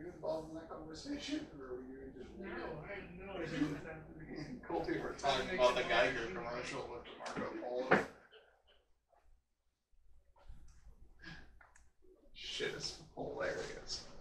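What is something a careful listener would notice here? Footsteps approach across the floor.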